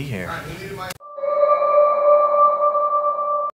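A mobile phone plays an electronic ringtone.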